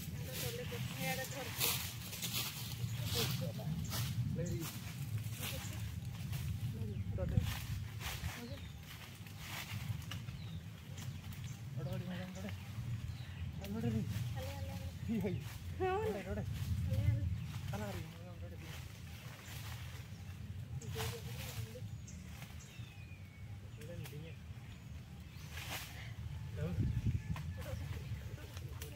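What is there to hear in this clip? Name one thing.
Leafy branches rustle and crackle as they are pulled and dragged.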